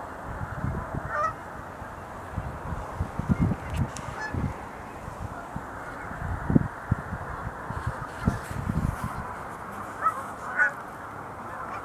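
Cranes call faintly in the distance.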